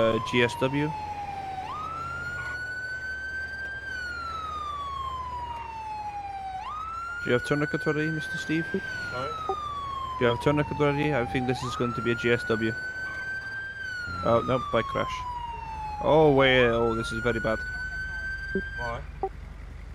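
An ambulance siren wails, rising and falling in long sweeps.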